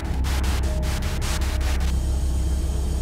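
An electrical device hums with a deep, steady drone.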